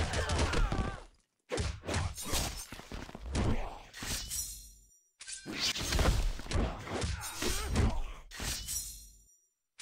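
Punches and kicks land with heavy thuds and whooshes.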